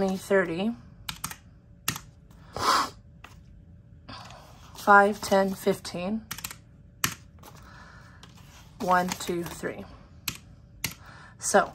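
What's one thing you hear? Calculator keys click under a finger.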